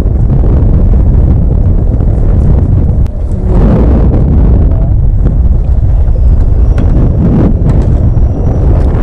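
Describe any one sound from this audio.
Choppy water splashes against a boat's hull.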